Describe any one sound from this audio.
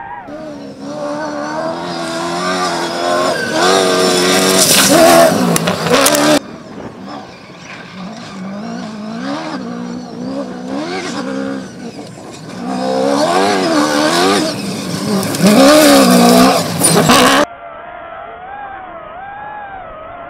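A rally car engine roars loudly, revving up and down as the car speeds past.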